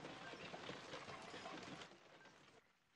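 Wooden cart wheels creak and rumble over rough ground.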